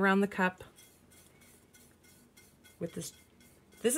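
A paintbrush softly dabs and brushes against a hard surface.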